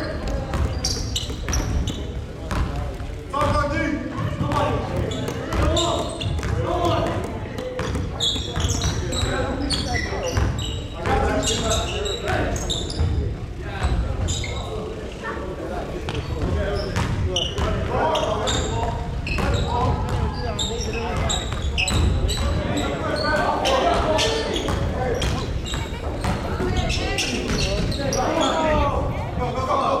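Young men shout and call out across the gym.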